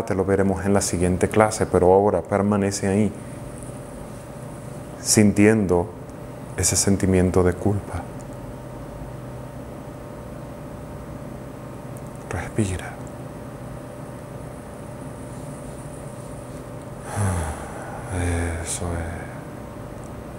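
A man speaks calmly and slowly into a close microphone, with long pauses.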